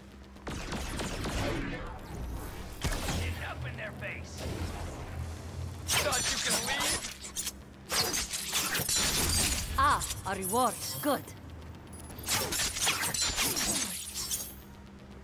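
Blades slash and strike in a fast fight.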